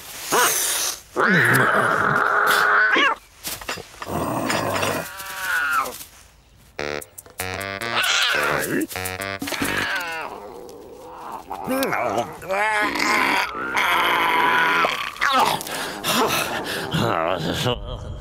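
A cat yowls and hisses.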